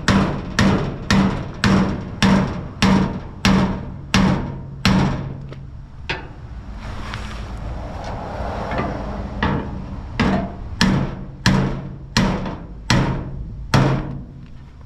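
Metal clangs in quick, ringing blows under a car.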